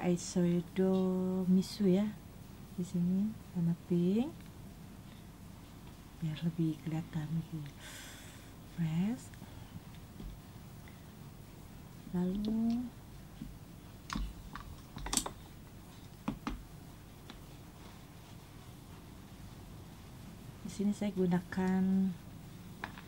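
A young woman talks calmly close to the microphone, in bursts with pauses.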